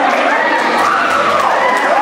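People in an audience clap their hands.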